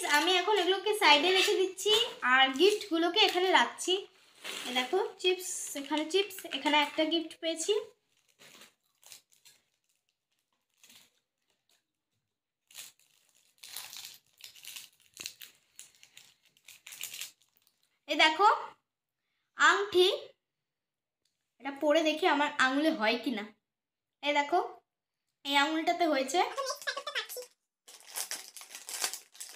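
A plastic snack bag crinkles and rustles.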